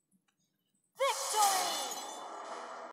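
A triumphant fanfare blares.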